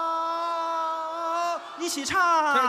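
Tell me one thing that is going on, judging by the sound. A man sings a long, steady note through a microphone.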